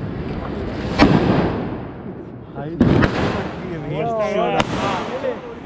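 Firecrackers burst with loud bangs nearby.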